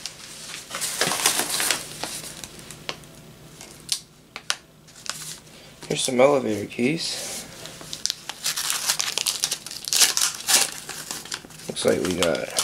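Packing paper crinkles and rustles as it is unwrapped by hand.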